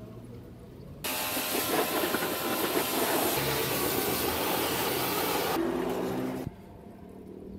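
A pressure washer sprays water with a loud, steady hiss.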